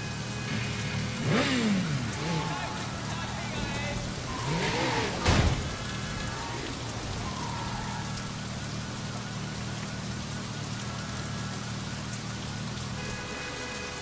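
A motorcycle engine idles with a low steady hum.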